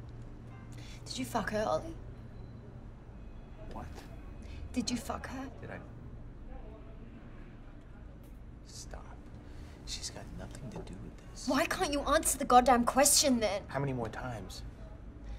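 A young woman asks questions sharply, close by.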